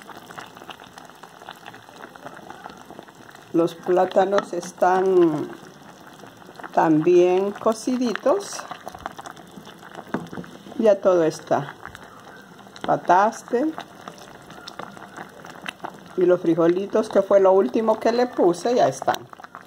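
A wooden spoon stirs and scrapes through a thick stew in a pot.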